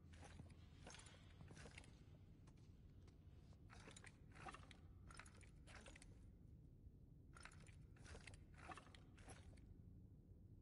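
Stone tiles click and clack as they are slid into place.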